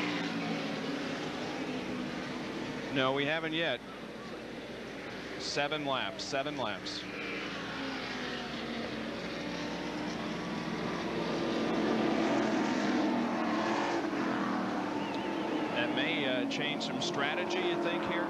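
Racing car engines roar and drone steadily, growing louder as a pack of cars approaches.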